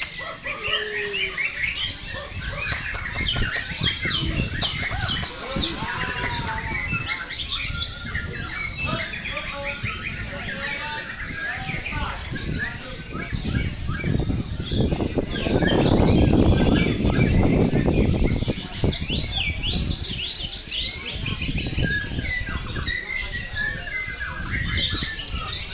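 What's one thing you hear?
A caged songbird sings loud, rapid whistling trills and chirps close by.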